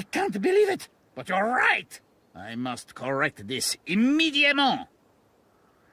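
A man speaks with animation in a theatrical voice.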